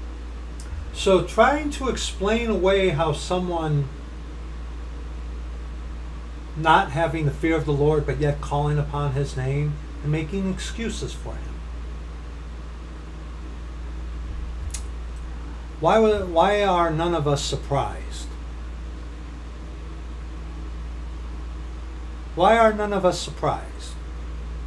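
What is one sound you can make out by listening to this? A middle-aged man speaks calmly and thoughtfully, close to a microphone, in short bursts with pauses.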